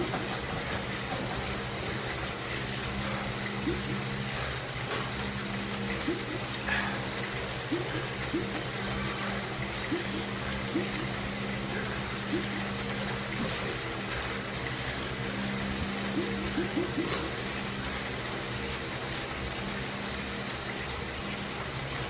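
A bike trainer hums steadily.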